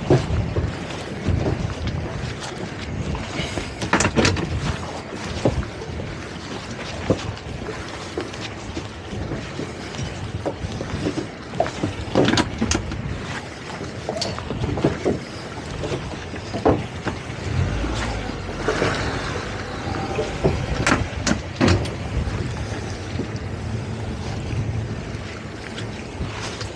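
A boat's engine hums steadily outdoors in wind.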